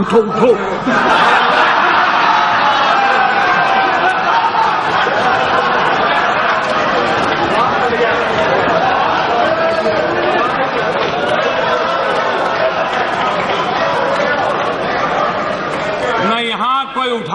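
A crowd clamours and laughs loudly.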